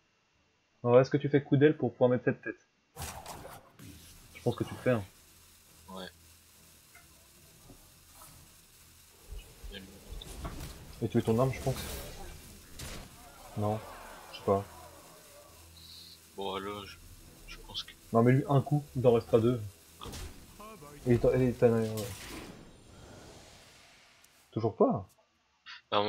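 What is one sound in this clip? A young man talks with animation into a headset microphone, close and clear.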